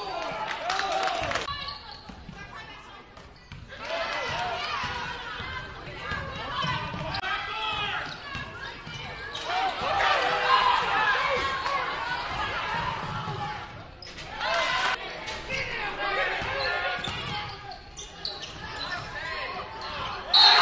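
A crowd cheers and murmurs in a large echoing gym.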